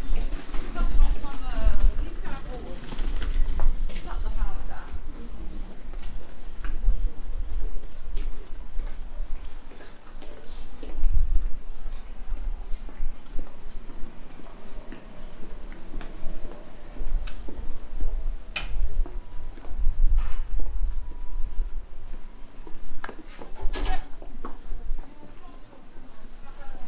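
Footsteps tap on cobblestones in an outdoor street.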